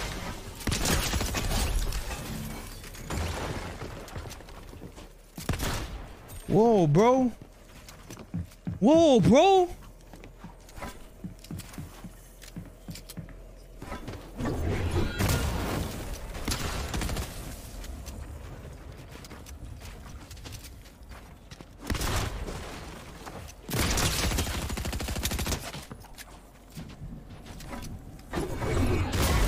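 Gunshots crack rapidly in a video game.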